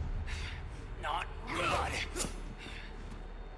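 A man speaks calmly and close.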